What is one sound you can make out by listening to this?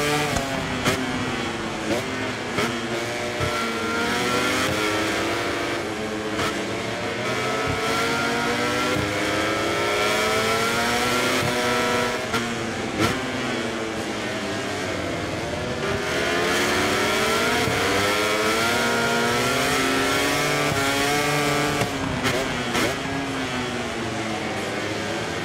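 A motorcycle engine revs high and drops as gears shift through corners.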